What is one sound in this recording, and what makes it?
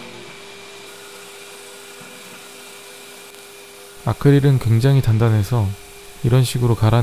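A disc sander hums steadily.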